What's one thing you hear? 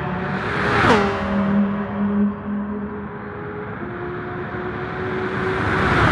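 A racing car engine drones steadily into the distance.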